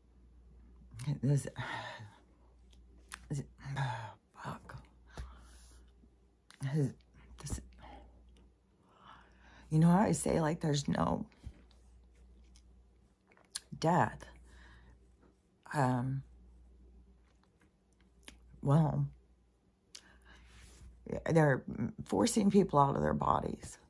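An older woman speaks calmly and expressively close to a microphone, with pauses.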